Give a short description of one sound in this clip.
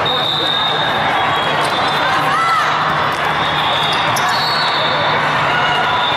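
A volleyball thuds against players' hands.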